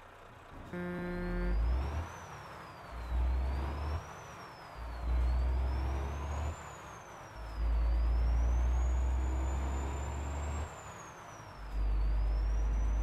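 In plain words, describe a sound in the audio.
A truck engine rumbles and revs in surges.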